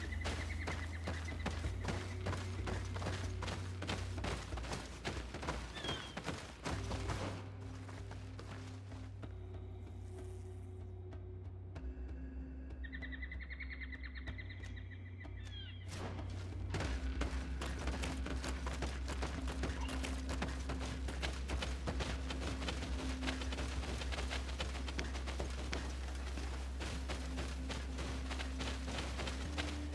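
Footsteps run quickly over dry ground and grass.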